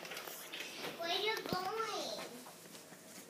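A young child speaks in a high voice nearby.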